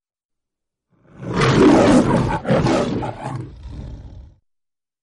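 A lion roars loudly twice, with deep growls.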